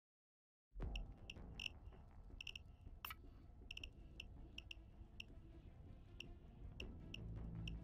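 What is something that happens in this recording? Short menu clicks sound in quick succession.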